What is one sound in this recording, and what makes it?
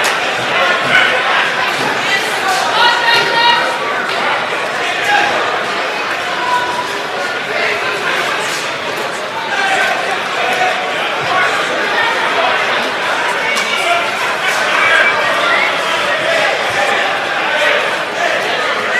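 A large crowd of men and women chatters all at once in a big echoing hall.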